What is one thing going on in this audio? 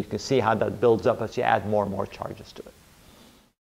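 A middle-aged man speaks calmly into a microphone, as if lecturing.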